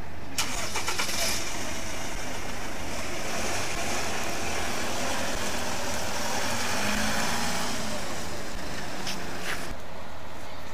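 Traffic hums along a street outdoors.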